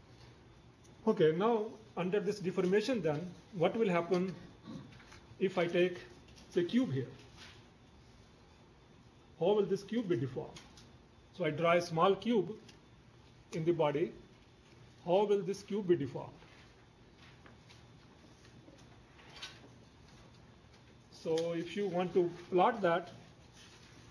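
An elderly man lectures calmly into a microphone, in short phrases with pauses.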